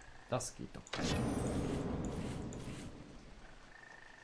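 A magical chime shimmers and fades.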